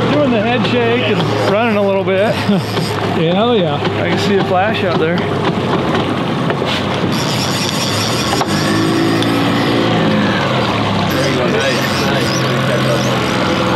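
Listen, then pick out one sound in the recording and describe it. A boat's outboard motor hums steadily.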